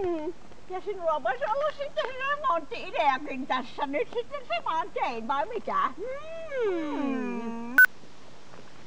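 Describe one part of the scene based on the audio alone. A middle-aged woman speaks expressively nearby.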